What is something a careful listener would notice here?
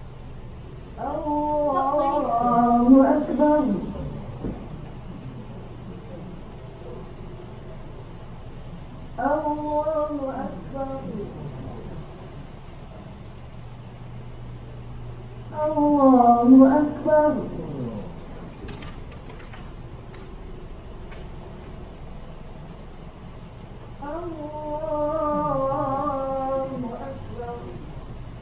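A man chants in long drawn-out calls through a loudspeaker in an echoing hall.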